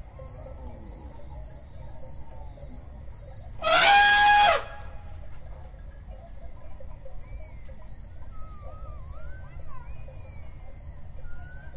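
An elephant's heavy feet thud softly on a wet track.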